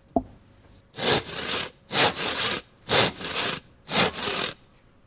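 A hand saw cuts through wood in steady, rhythmic strokes.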